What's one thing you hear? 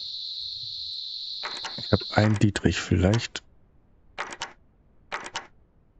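A lock pick clicks and scrapes inside a lock.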